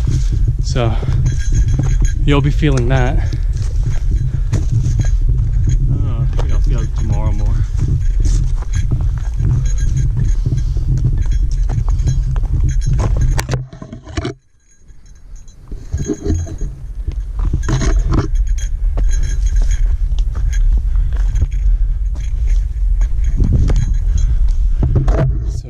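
Footsteps crunch on a rocky trail.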